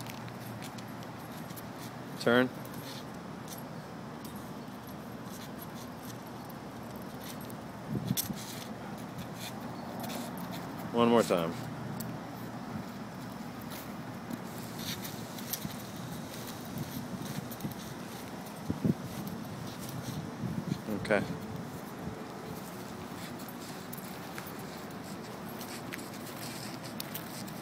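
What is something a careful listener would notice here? A dog pants.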